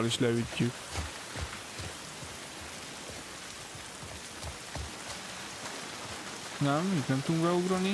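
Footsteps thud softly on the ground.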